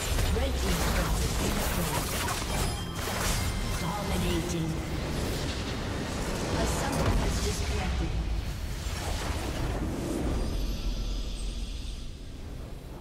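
Game battle effects crash and blast loudly.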